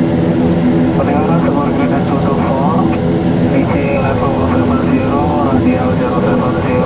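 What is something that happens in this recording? A young man speaks calmly into a headset microphone.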